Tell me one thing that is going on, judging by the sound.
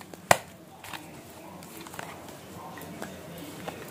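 A card is set down softly.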